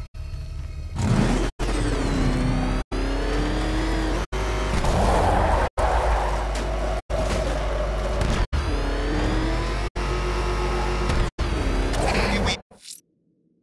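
A powerful car engine roars and revs as the car speeds along.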